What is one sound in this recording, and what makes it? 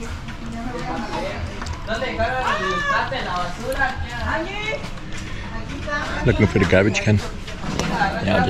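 A man bites and chews juicy mango noisily.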